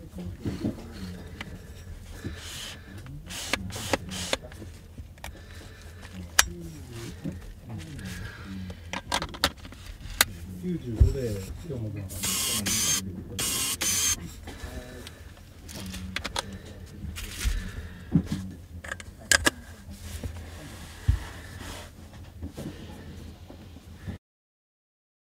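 Plastic lens parts click and knock as hands handle them.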